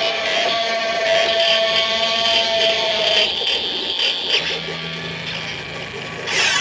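Electronic music plays with droning, buzzing tones.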